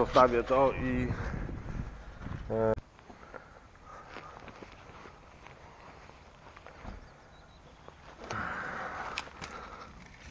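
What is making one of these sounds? Footsteps rustle through dry grass and pine branches.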